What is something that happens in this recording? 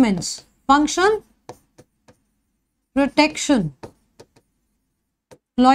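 A young woman speaks calmly and clearly into a microphone, in short phrases with pauses.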